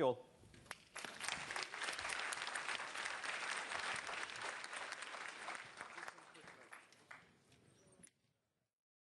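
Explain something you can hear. An audience applauds in a large hall, then the clapping fades.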